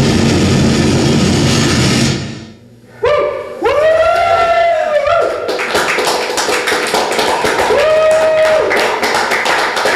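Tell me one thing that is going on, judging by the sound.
Loud electronic music plays through speakers, briefly cutting out.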